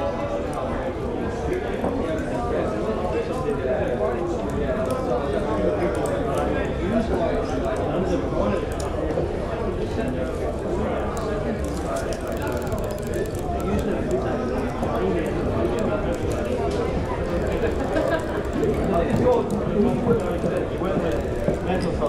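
A crowd of men and women chatter and murmur indoors.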